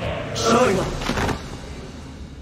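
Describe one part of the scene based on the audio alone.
A body falls and thuds onto a hard floor.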